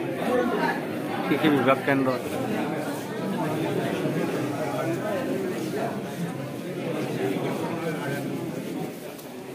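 Several women chat nearby in a busy, echoing room.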